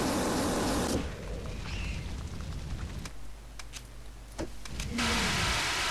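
A fire extinguisher sprays with a steady hiss.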